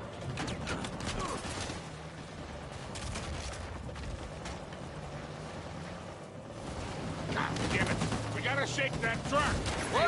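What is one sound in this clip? A jeep engine rumbles steadily as it drives over rough ground.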